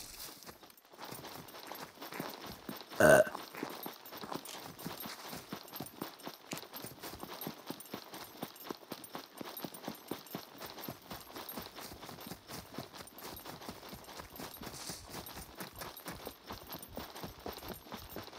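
Footsteps crunch steadily over grass and rock.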